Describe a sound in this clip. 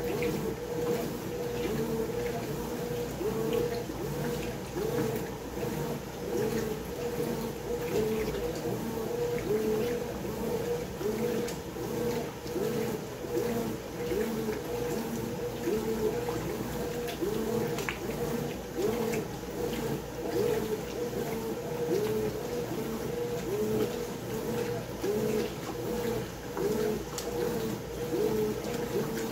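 A washing machine agitator churns back and forth with a rhythmic hum.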